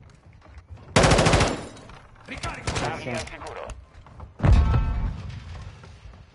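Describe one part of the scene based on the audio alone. Bursts of rapid gunfire rattle loudly.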